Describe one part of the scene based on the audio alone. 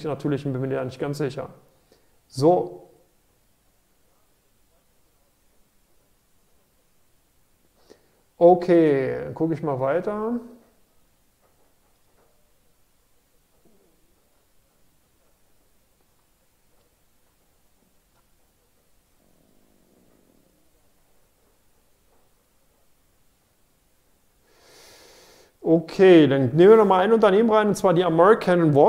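A middle-aged man speaks calmly into a close microphone, with long pauses.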